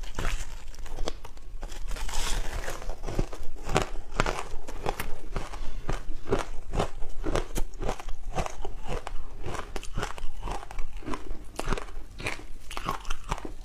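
Crumbly food crackles as fingers break off pieces.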